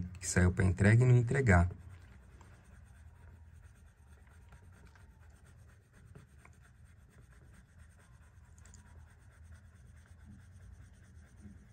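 A coloured pencil scratches softly on paper.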